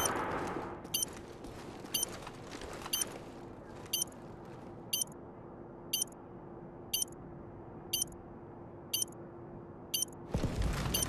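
A planted bomb beeps at a steady pace.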